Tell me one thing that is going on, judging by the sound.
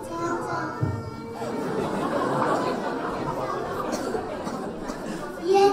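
A woman speaks to the children.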